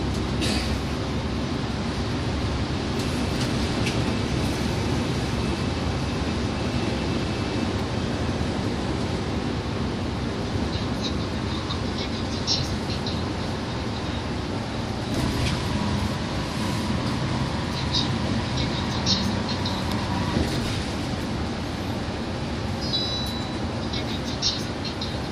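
Small rattles and clicks sound inside the bus now and then.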